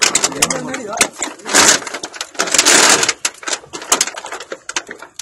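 A crowd of men talks loudly nearby outdoors.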